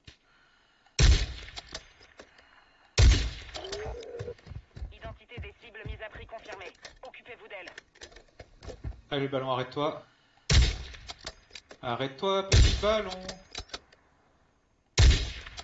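A sniper rifle fires loud, booming shots with a ringing echo.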